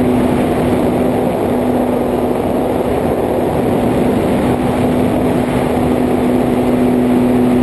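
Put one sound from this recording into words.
Drone propellers whir with a steady, loud buzz.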